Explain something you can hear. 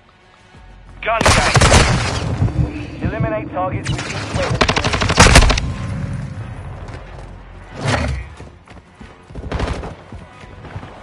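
Gunfire and explosions from a video game boom loudly.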